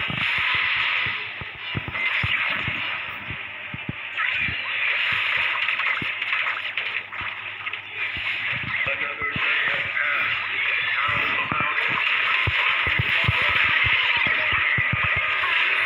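Sword slashes and magic blasts whoosh and clash in quick bursts.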